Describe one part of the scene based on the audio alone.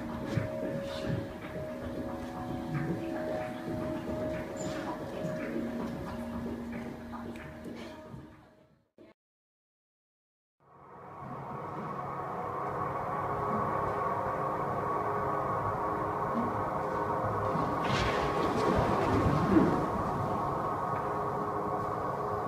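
Bare feet thud and slide on a floor as dancers move.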